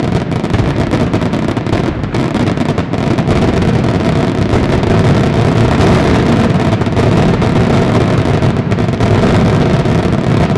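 Fireworks explode in a rapid, continuous barrage of booms and crackles.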